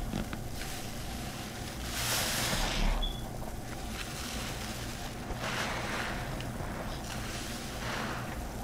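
Soapy sponges squish and squelch in foamy water.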